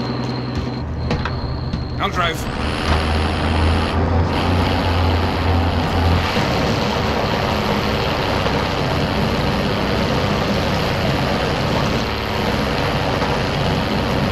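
A truck engine starts and rumbles steadily as the truck drives along.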